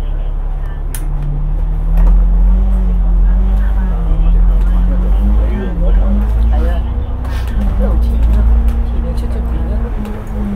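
A bus engine revs up and rises in pitch as the bus pulls away.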